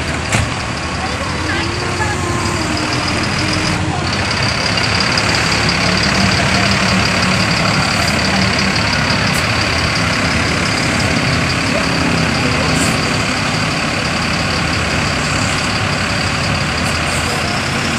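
A bus diesel engine rumbles steadily as the bus pulls slowly away.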